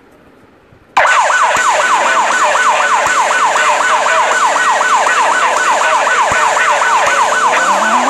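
A police siren wails up and down rapidly and steadily.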